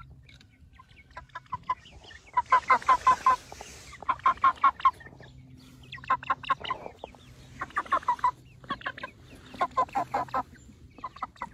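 Chickens cluck in rapid bursts close by.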